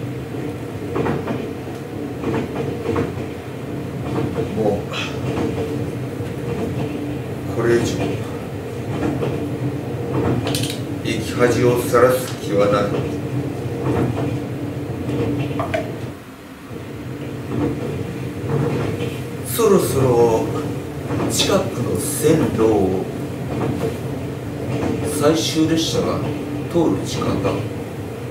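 A middle-aged woman reads aloud slowly, heard in an echoing room.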